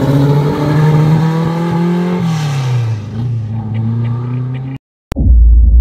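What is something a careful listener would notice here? A car engine revs and roars as the car drives past, then its pitch drops as it moves away.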